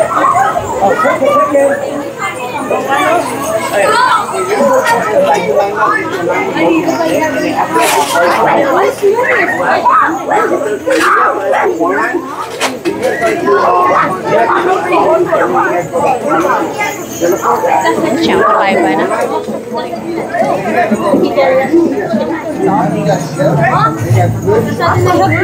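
A crowd of children and adults chatters all around in an echoing hall.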